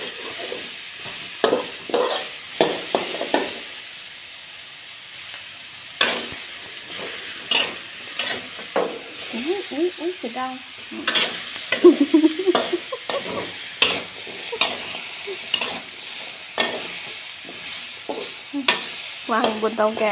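Food sizzles steadily in a hot wok.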